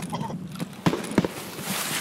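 Leaves and branches rustle as someone pushes through bushes.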